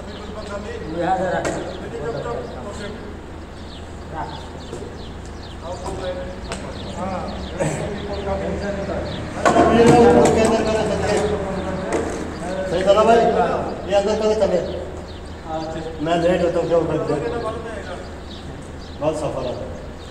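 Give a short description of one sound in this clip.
Several men talk loudly and animatedly nearby outdoors.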